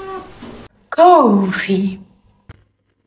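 A young woman exclaims in a rising and falling voice, close by.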